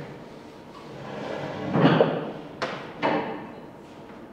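A felt eraser rubs across a chalkboard.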